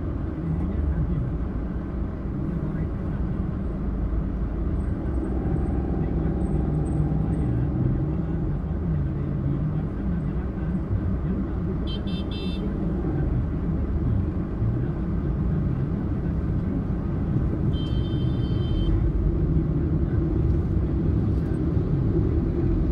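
A car engine hums steadily while driving in slow traffic.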